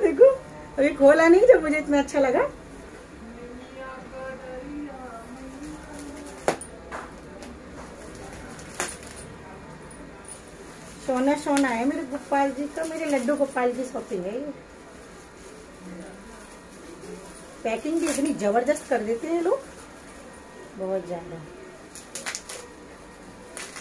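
Plastic bubble wrap crinkles and rustles in a woman's hands.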